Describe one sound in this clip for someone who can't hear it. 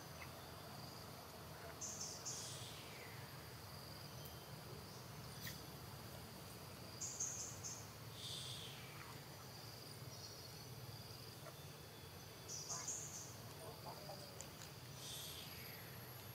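Dry leaves rustle as a baby monkey crawls over them.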